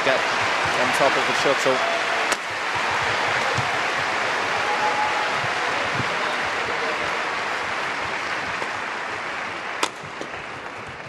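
A large crowd roars and cheers in a big echoing hall.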